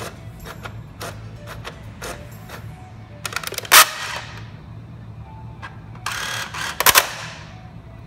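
A vending machine's mechanism whirs and clicks as it starts up.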